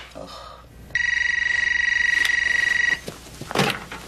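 A phone gives a steady electronic tone.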